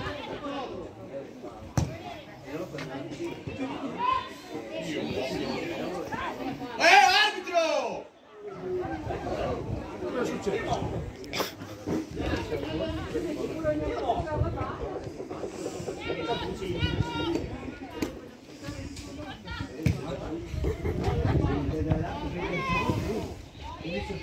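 Spectators close by call out and chat.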